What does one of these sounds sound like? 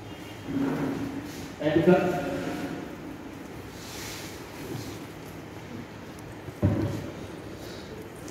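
Several men and women talk nearby.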